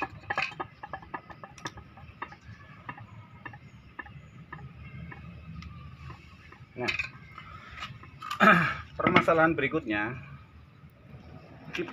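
Small metal parts clink and tap.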